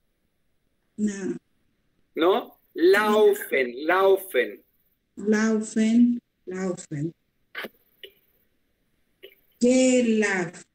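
An elderly man talks with animation over an online call.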